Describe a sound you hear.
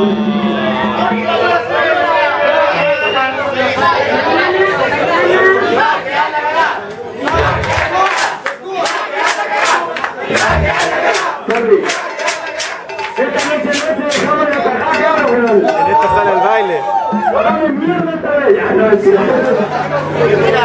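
A crowd of young men and women sings and shouts together in a room.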